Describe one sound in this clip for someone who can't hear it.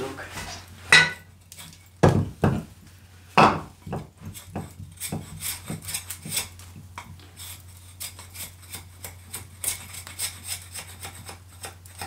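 A hatchet chops and splits kindling with sharp knocks.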